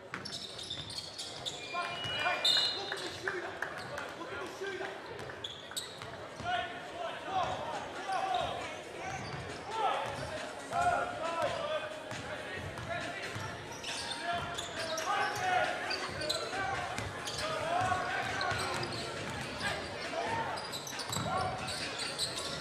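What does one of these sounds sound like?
A basketball bounces on a hard floor.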